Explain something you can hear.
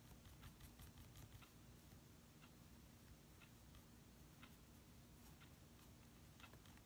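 A paintbrush taps and dabs softly on paper.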